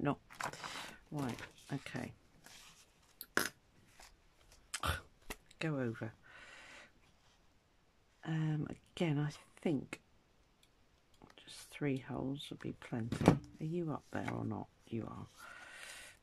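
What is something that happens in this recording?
Paper and card rustle as they are handled.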